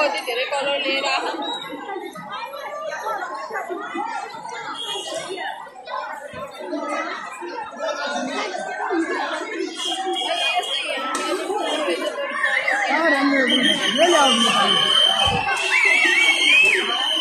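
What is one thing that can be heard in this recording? A large outdoor crowd chatters and calls out loudly all around.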